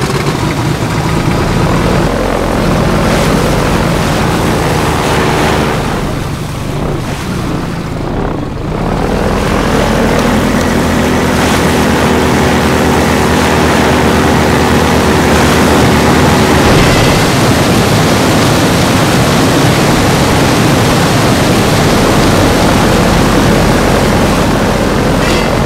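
An airboat engine roars steadily.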